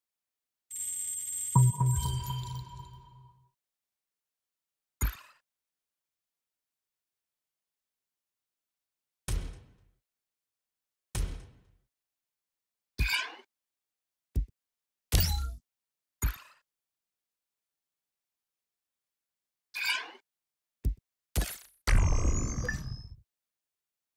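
Game interface sounds whoosh and chime as menus open and close.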